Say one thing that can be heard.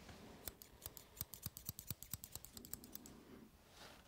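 Scissors snip rapidly close to the microphone.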